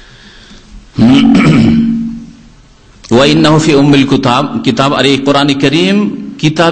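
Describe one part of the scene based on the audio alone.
A man speaks into a microphone in a slow, chanting voice.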